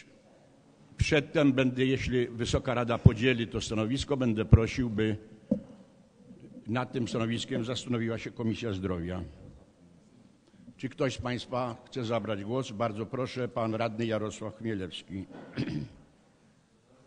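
An elderly man speaks steadily into a microphone, heard through a loudspeaker in a large echoing hall.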